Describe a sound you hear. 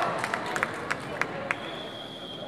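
A volleyball is hit with sharp smacks in a large echoing gym.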